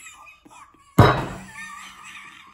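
A plate clatters onto a table.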